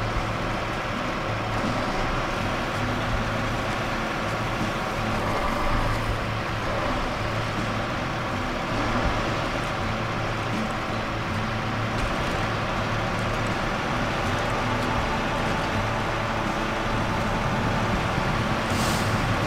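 Tyres crunch over rough ground.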